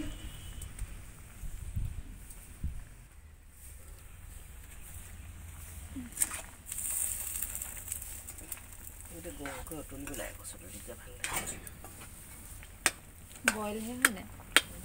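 A pot of liquid boils and bubbles over a fire.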